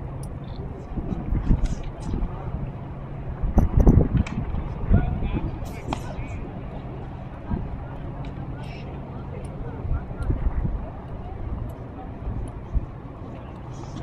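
Wind gusts across an outdoor space.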